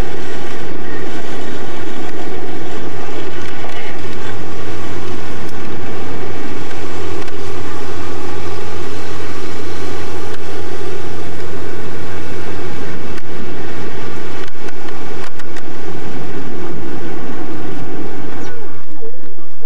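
A band plays loud amplified music through speakers.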